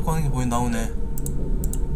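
A young man speaks into a microphone close by.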